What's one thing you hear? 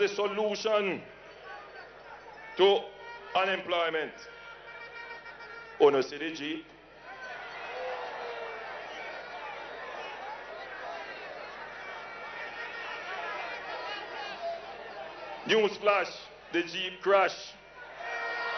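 A man speaks forcefully into a microphone over loudspeakers, with short pauses between phrases.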